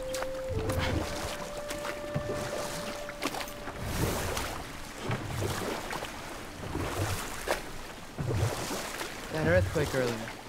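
Oars splash rhythmically in water.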